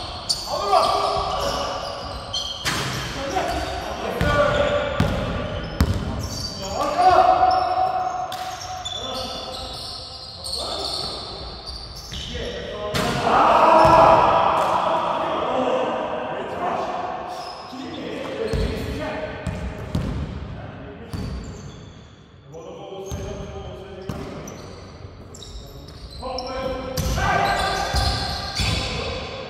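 Men call out to each other across a large echoing gym.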